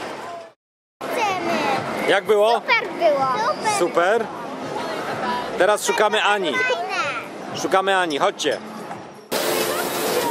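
A young girl talks close by with excitement.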